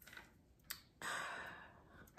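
A young woman speaks softly, close up.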